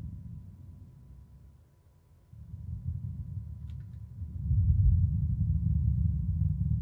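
A spacecraft's engines rumble low as it hovers and flies forward.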